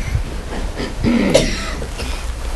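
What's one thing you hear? A man speaks softly into a handheld microphone.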